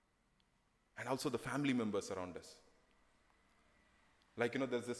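A man speaks calmly into a microphone, heard through a loudspeaker in a room.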